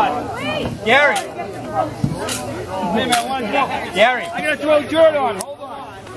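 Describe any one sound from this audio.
Shovels scrape and dig into soil.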